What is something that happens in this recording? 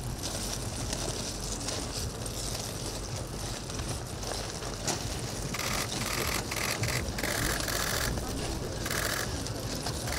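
Men murmur and chat quietly outdoors among a small crowd.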